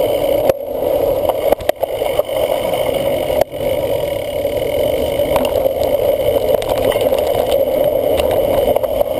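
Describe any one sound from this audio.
A cyclocross bike rattles and clatters over bumps.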